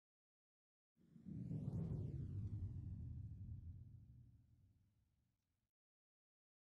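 A deep whooshing rumble swells up and slowly fades away.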